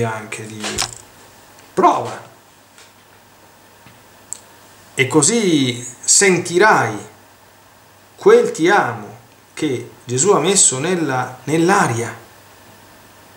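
A middle-aged man speaks calmly and slowly, close to a microphone, in short phrases with pauses.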